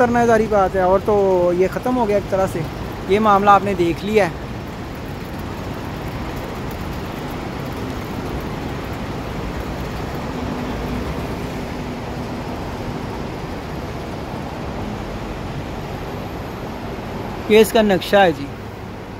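City traffic hums steadily in the distance outdoors.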